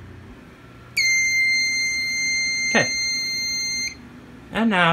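An alarm control panel beeps with a steady high tone.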